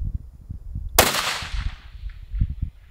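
A rifle fires a single loud shot that echoes outdoors.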